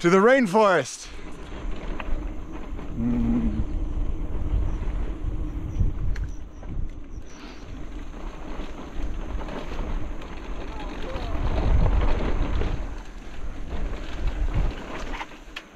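Mountain bike tyres roll over a dirt trail.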